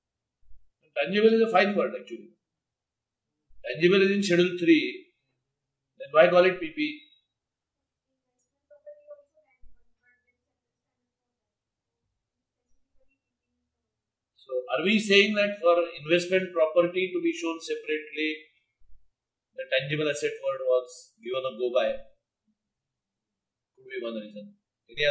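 An elderly man lectures calmly through a microphone, with pauses.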